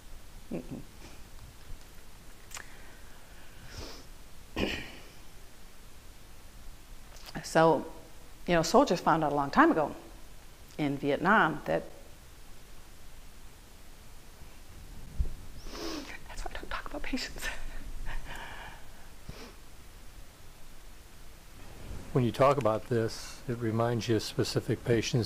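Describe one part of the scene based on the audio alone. A middle-aged woman speaks calmly and close by, with pauses.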